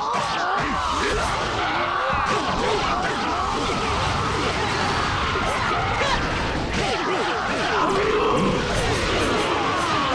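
Many soldiers cry out as they are struck down.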